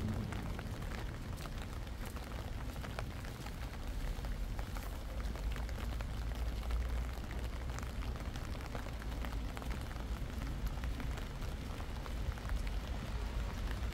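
Low wind rumbles outdoors.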